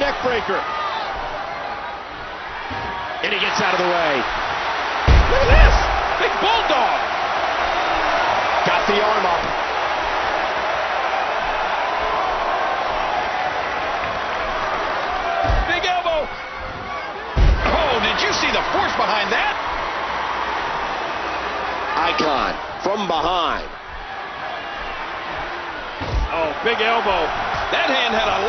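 A large crowd roars and cheers steadily in a big echoing arena.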